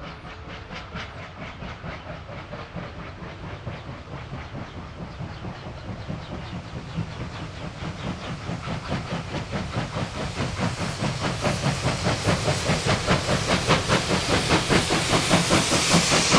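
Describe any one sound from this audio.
Train wheels rumble and clatter on the rails.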